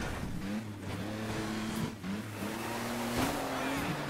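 Tyres skid and slide on snow.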